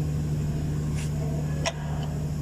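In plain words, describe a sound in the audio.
Metal parts click and tap as hands work on an engine pulley.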